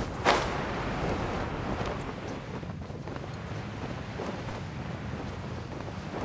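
Wind rushes past steadily.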